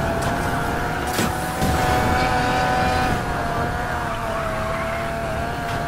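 Tyres screech as a car drifts through a turn.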